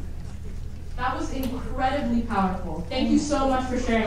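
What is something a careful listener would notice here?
A young woman speaks into a microphone, heard over loudspeakers in a large hall.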